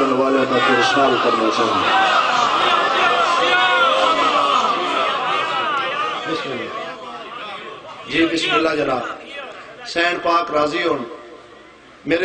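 A young man recites with feeling through a microphone and loudspeakers.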